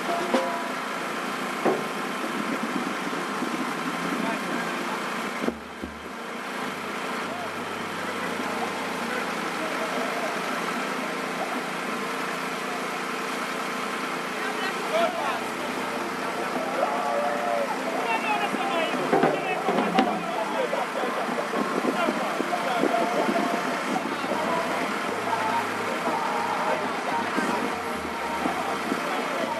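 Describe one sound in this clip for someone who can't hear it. A vehicle engine hums as it drives slowly along a road.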